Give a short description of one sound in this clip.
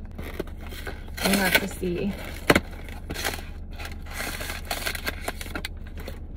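A paper box crinkles and rustles in hands.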